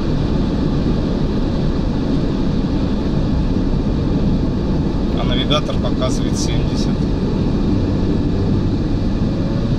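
Tyres roar steadily on a highway as a car drives along.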